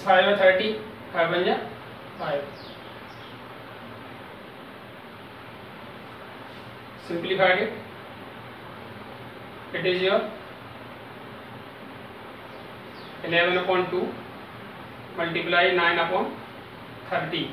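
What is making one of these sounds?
A man speaks calmly in short bursts with pauses, as if explaining.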